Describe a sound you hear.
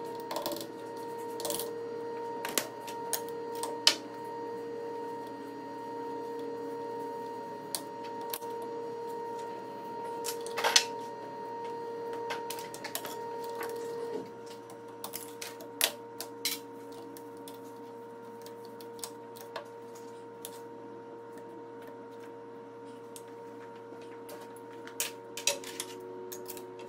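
Metal parts click and clack close by.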